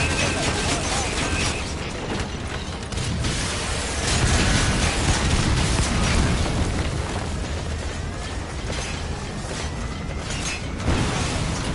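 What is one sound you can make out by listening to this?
A walking machine clanks with heavy metal footsteps.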